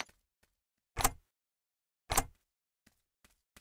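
A game menu button clicks.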